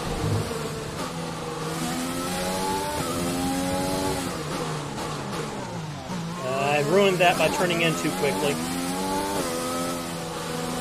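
A racing car engine roars and whines as it shifts up and down through the gears.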